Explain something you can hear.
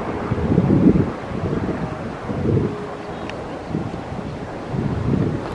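Wind blows in strong low gusts outdoors.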